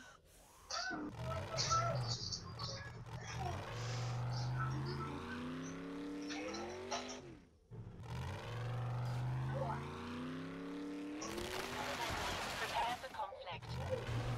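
A car engine roars and revs, rising in pitch again and again.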